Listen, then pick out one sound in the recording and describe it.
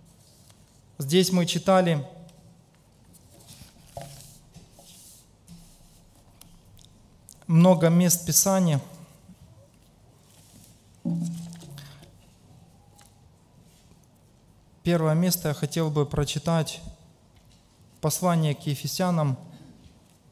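A middle-aged man reads out calmly through a microphone, in short bursts with pauses, in a slightly echoing room.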